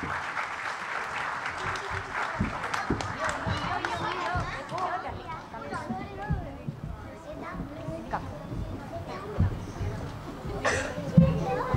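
Many young children chatter and call out in a large hall.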